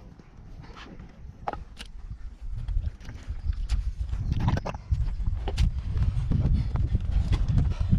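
Boots squelch and suck through deep mud.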